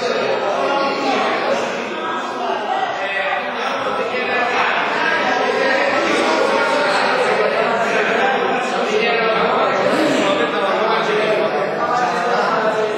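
Several men argue loudly over one another in an echoing hall.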